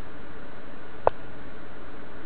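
A short electronic click sounds as a chess piece is moved.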